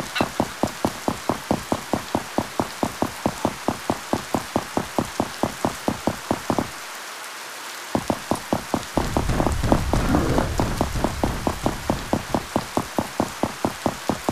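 Rain patters down steadily outdoors.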